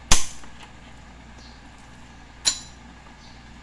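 Utensils clatter sharply on a hard counter.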